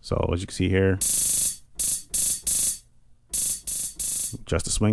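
Electronic drum sounds play in a quick beat.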